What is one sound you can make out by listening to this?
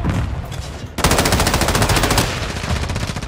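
A rifle fires in a fast, loud burst.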